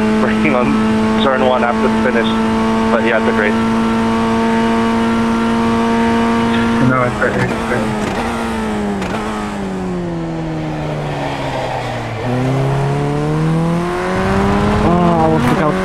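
A race car engine holds a steady high whine, then drops in pitch as the car slows and revs up again.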